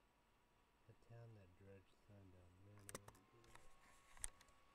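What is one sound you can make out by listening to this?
A young man speaks quietly and calmly, close to a computer microphone.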